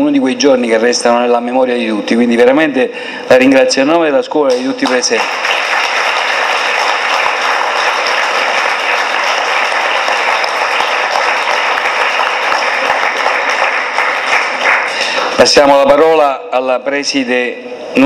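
A woman speaks into a microphone over loudspeakers in an echoing hall.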